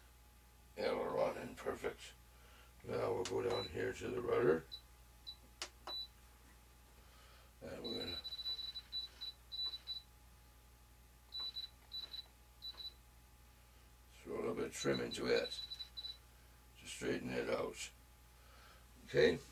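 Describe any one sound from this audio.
A man talks calmly, close by, in short bursts.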